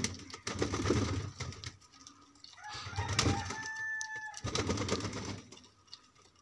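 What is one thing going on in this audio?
A pigeon flaps its wings noisily.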